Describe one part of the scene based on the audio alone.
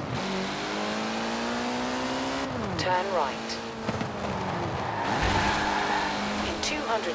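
A racing car engine roars, revving up and dropping as the gears shift.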